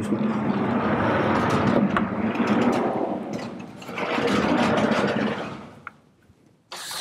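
Heavy blackboard panels slide along their rails with a long rumbling scrape.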